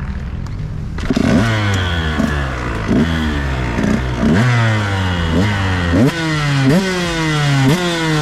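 A dirt bike engine revs up sharply again and again, each rev rising and falling.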